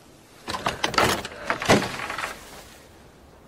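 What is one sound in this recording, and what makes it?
A wooden door scrapes and creaks open.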